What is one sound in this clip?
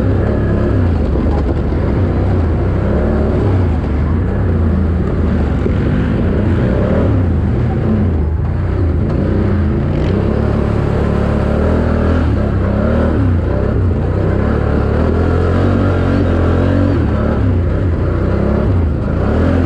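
A dirt bike engine revs and roars up close, rising and falling in pitch.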